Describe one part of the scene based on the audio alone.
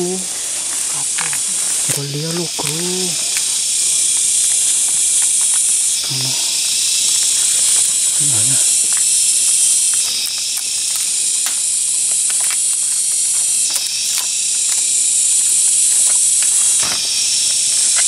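Twigs and branches crack and rustle underfoot as someone climbs through undergrowth.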